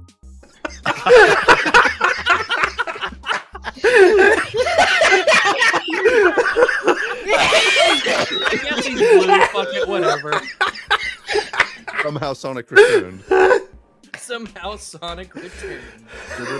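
Several men laugh over an online call.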